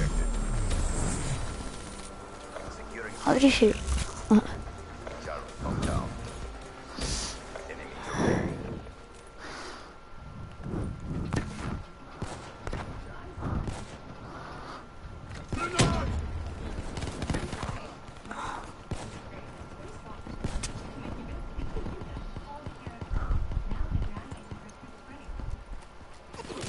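Rifles fire in short, sharp bursts.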